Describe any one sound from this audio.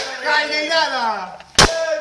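A young man shouts and sings loudly nearby.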